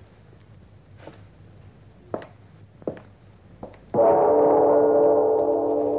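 A man's footsteps tap across a hard floor.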